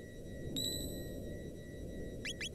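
A game chime rings out.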